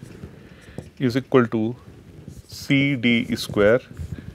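A middle-aged man speaks calmly and clearly, as if lecturing.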